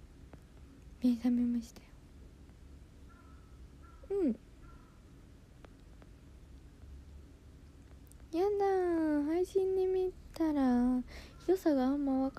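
A young woman speaks close to a microphone in a soft, sing-song voice.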